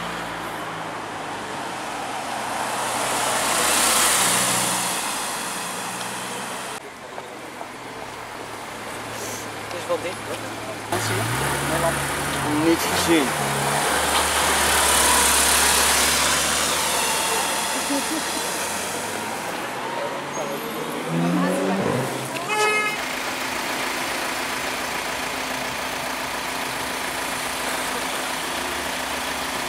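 City traffic passes by with a steady roar.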